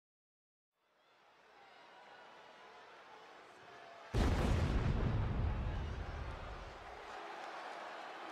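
A large arena crowd cheers and murmurs.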